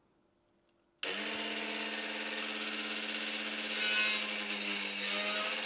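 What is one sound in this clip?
A small electric drill whirs steadily at high speed.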